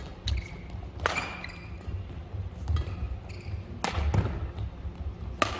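Rackets strike a shuttlecock with sharp smacks in a large echoing hall.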